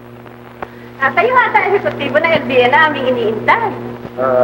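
A woman speaks warmly, heard through an old, hissy recording.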